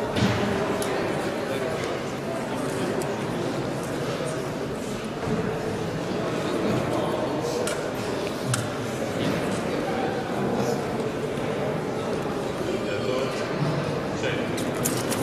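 Voices murmur in a large echoing hall.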